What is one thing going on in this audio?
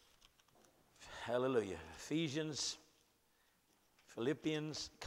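An older man speaks slowly and deliberately into a microphone.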